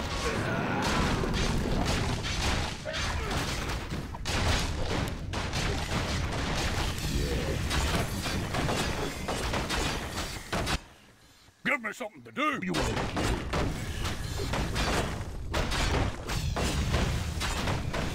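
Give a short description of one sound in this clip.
Game battle sounds clash with spell blasts and weapon hits.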